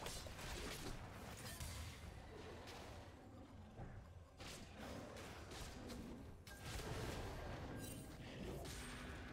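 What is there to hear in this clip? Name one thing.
Magical spell effects whoosh and crackle.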